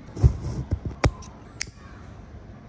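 A lighter clicks.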